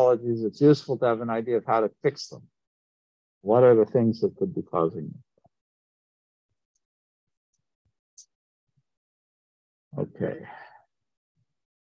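A man talks calmly through an online call, in short bursts with pauses.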